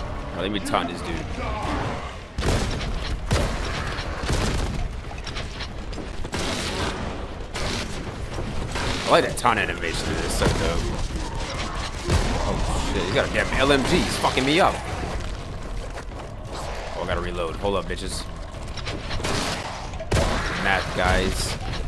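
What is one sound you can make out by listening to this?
Fiery explosions burst and roar.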